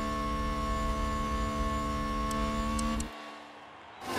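A racing car engine whines at high speed from the cockpit.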